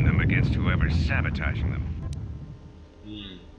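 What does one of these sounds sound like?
A man speaks with urgency over a transmission.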